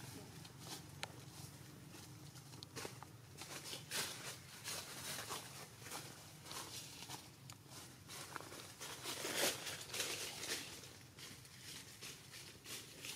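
Leaves and branches rustle as monkeys climb about in a tree.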